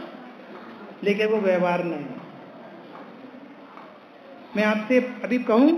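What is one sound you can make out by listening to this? A young man chants in a steady, drawn-out voice through a microphone.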